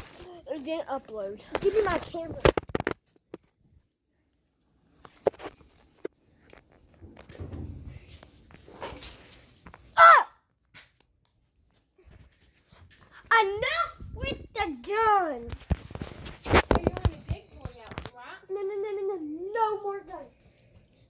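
A boy talks loudly and playfully close by.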